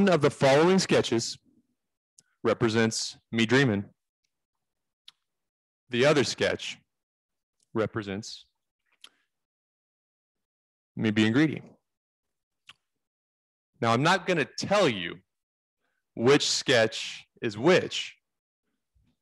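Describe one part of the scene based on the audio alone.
A man speaks closely into a microphone in short phrases with pauses.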